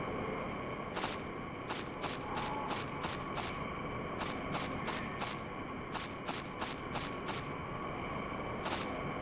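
Boots tread on rough ground in quick, even steps.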